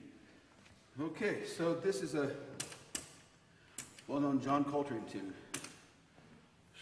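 A man speaks casually in a large echoing hall.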